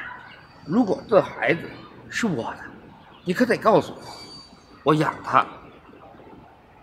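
A young man talks emphatically, close by.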